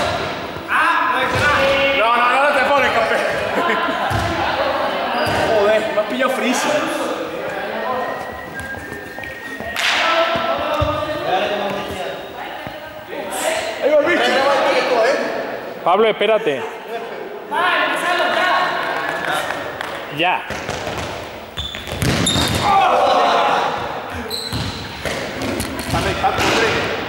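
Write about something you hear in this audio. A man talks with animation nearby, echoing in a large hall.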